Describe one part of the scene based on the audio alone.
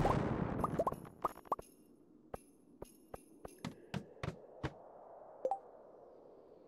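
Short game sound effects click and tap.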